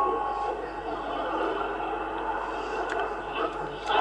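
A radio tuning knob clicks as it turns.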